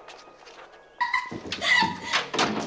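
A young girl runs down a hallway with quick footsteps.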